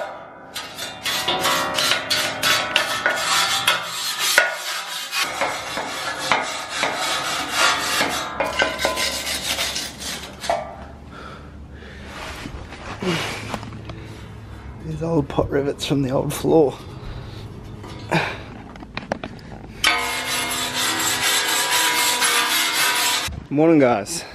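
A wire brush scrubs rapidly against metal.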